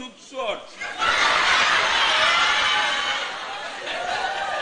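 An audience laughs and cheers in a large hall.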